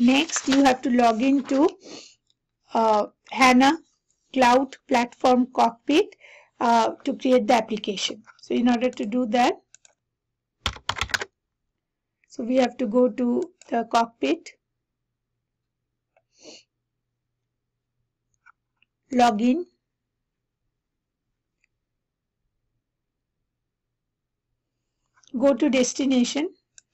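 A woman talks calmly and clearly into a close microphone, with pauses.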